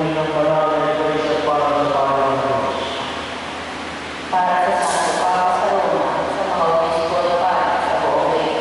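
A woman sings slowly through a microphone in an echoing hall.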